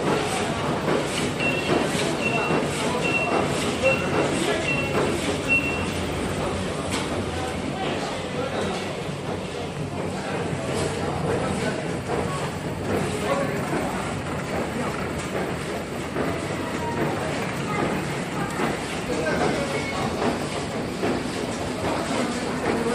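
Industrial machines clatter and hum steadily in a busy room.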